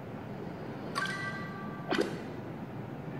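A game gives short electronic chimes.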